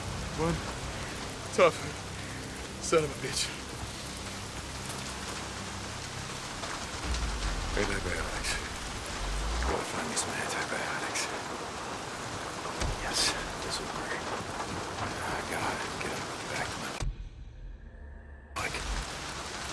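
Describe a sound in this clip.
Footsteps crunch over loose debris and dry brush.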